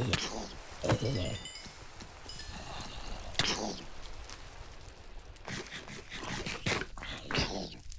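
A zombie villager groans and grunts when struck.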